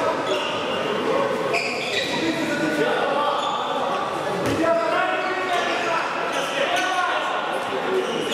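Sneakers squeak on a hall floor.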